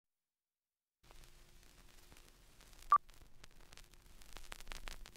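Old film crackles and pops with faint hiss.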